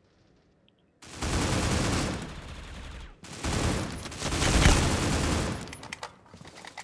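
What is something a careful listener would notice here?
A rifle fires loud rapid bursts of shots.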